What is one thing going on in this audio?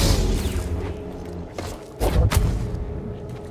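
A lightsaber hums and crackles.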